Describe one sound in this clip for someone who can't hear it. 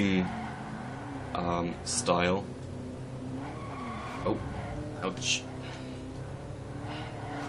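A racing car engine hums steadily at high revs.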